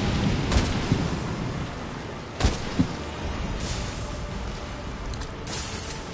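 A heavy blade strikes the beast with sharp clangs.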